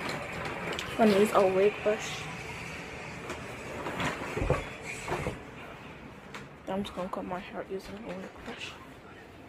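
A young girl speaks close to a phone's microphone.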